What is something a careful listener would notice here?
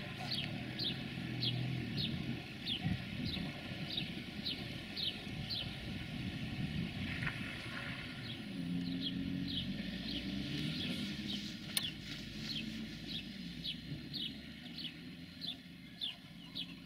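A diesel train engine rumbles low as the train approaches slowly.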